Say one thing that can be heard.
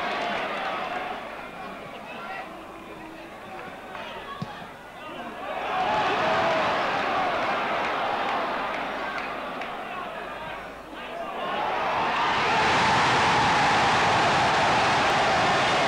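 A large stadium crowd murmurs and cheers throughout.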